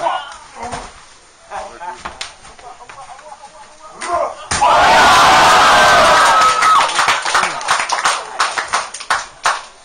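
A body thuds onto a wrestling mat.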